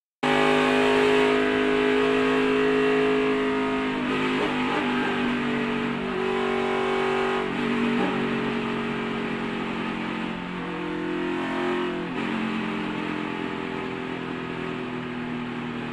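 Wind rushes past a fast-moving car.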